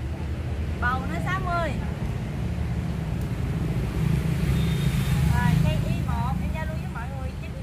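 A young woman speaks cheerfully close by.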